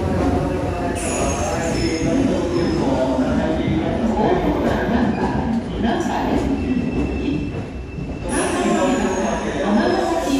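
Train wheels squeal on the rails.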